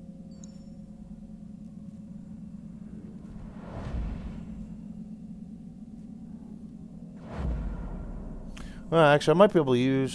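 A spacecraft hums with a low, steady drone.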